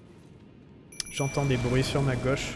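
A magic spell bursts with a shimmering, sparkling whoosh.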